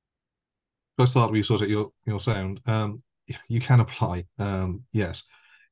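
A middle-aged man speaks slowly and thoughtfully over an online call.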